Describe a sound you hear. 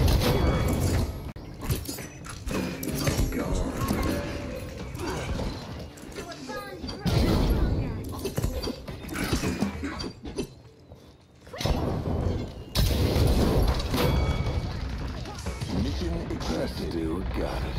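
A game weapon fires rapid energy blasts.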